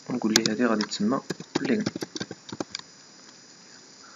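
Keyboard keys click quickly as someone types.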